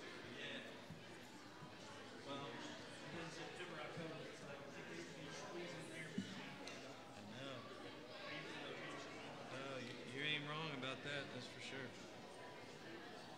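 People murmur and talk nearby in a large echoing hall.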